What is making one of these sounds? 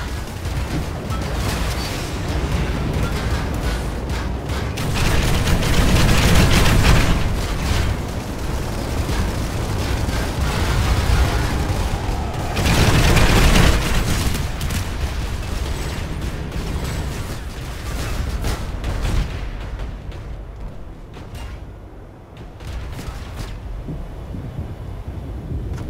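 A flying machine's engine roars steadily.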